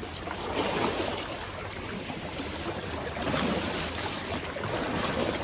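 Small waves lap and splash against rocks close by.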